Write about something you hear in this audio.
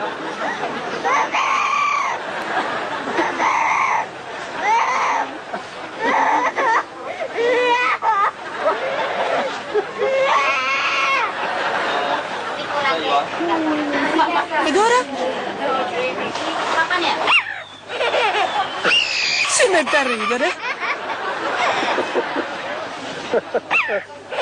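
A parrot squawks and chatters loudly in a shrill, singing voice.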